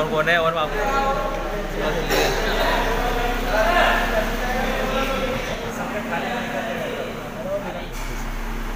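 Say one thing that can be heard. A man talks with animation close by.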